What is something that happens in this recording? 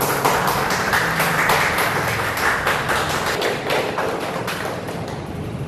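A group of people clap their hands in rhythm.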